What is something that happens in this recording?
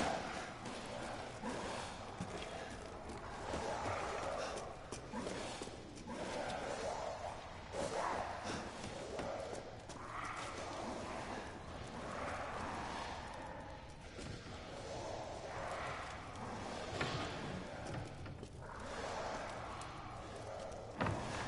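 Footsteps tread slowly over a hard, gritty floor.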